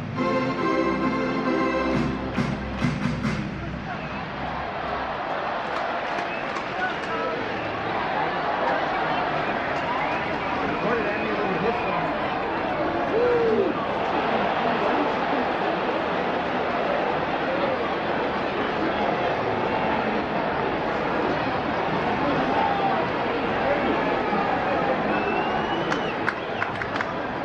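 A large stadium crowd murmurs and chatters all around.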